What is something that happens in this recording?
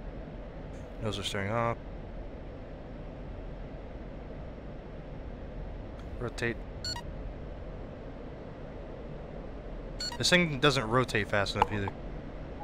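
A man speaks in short bursts into a microphone.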